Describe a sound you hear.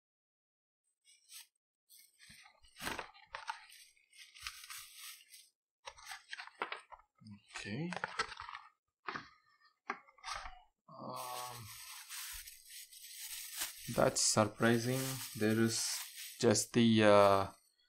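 Plastic wrapping crinkles as hands handle it.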